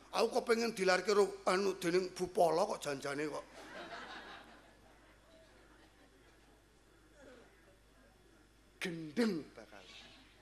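A middle-aged man speaks into a microphone in a slow, prayerful voice.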